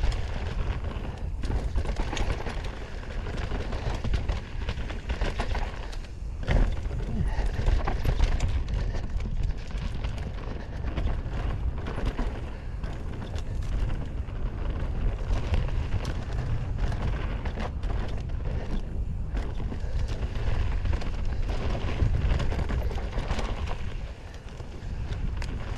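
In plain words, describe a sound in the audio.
Wind rushes steadily past at speed.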